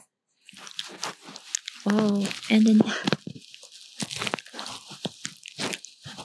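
A dog licks and smacks its lips.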